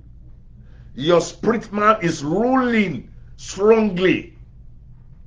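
A middle-aged man speaks with animation, close to the microphone.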